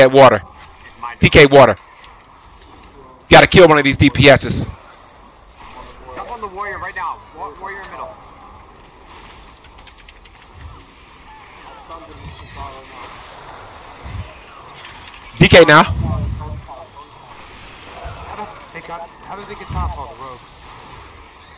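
A young man talks and shouts excitedly into a close microphone.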